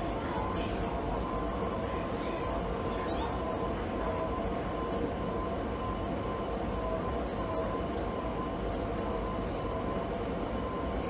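An idling train hums steadily, echoing in a large hall.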